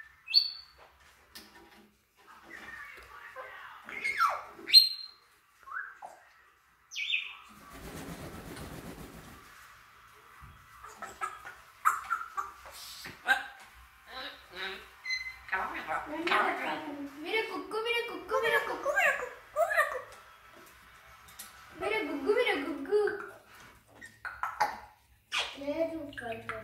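Parrots squawk, whistle and chatter close by.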